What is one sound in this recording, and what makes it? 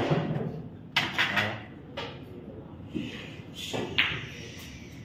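Billiard balls thud off the cushions.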